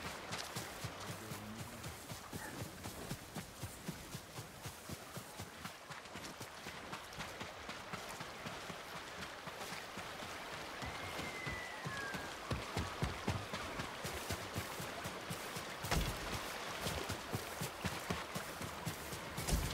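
Footsteps run quickly over earth and grass.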